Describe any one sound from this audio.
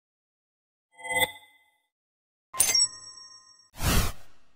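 A bright game chime rings out.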